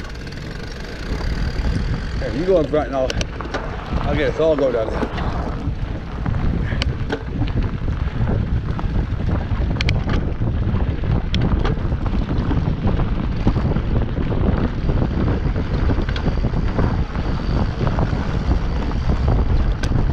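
Bicycle tyres crunch and rumble over a gravel and dirt trail.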